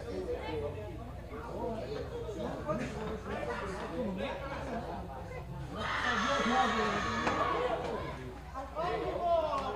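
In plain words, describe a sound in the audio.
A crowd of people chatters and calls out outdoors.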